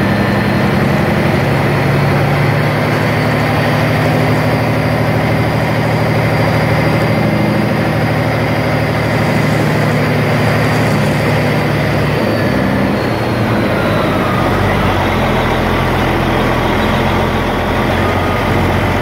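A heavy diesel truck engine pulls along.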